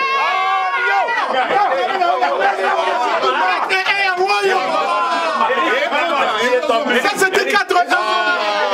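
A crowd of men and women sings loudly together.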